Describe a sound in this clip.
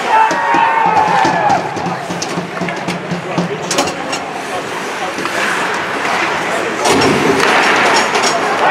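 Ice skates scrape and carve across the ice.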